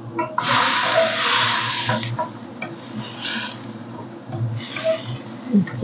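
A wooden spatula scrapes and stirs vegetables in a metal pan.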